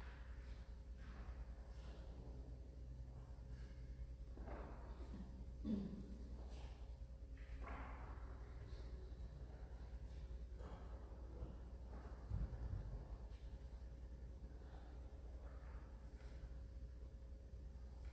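An elderly man reads aloud calmly through a microphone in a large echoing room.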